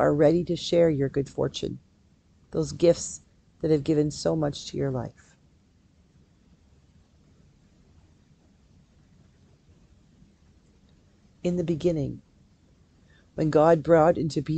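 A middle-aged woman reads aloud calmly and close to a microphone, pausing now and then.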